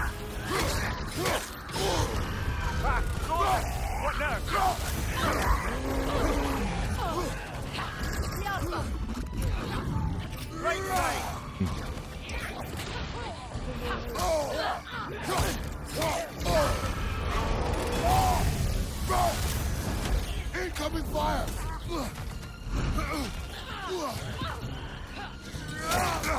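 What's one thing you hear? Weapons clash and thud in a fight.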